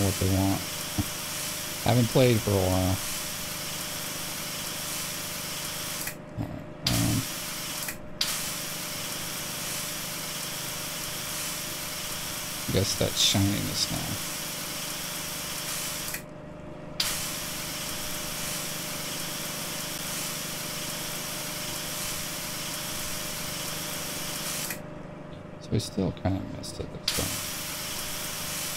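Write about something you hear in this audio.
A pressure washer sprays water in a steady hiss, stopping briefly now and then.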